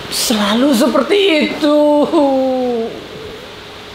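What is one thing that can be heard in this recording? A man cries out loudly close by, in drawn-out, wavering groans.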